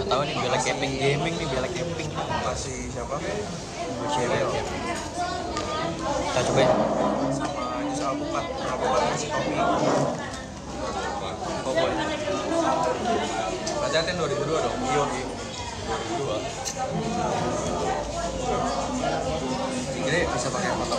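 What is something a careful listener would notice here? Many people chatter and talk all around in a busy, noisy room.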